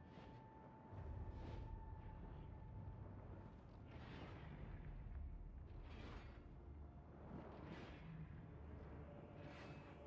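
A low rumble builds and rolls on.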